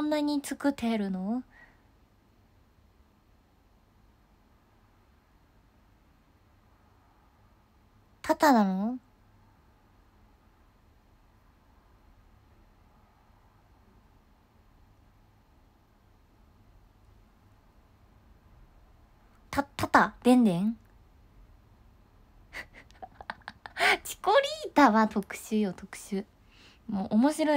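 A young woman speaks close to a microphone in short bursts, with animation.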